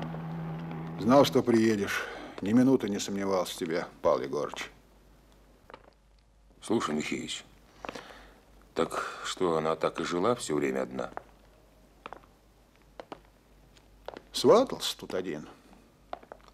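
A man speaks calmly and quietly nearby, in short phrases with pauses.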